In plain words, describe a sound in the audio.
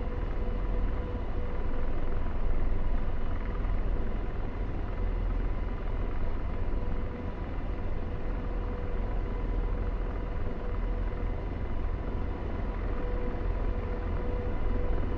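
A jet engine drones steadily with a low rumble.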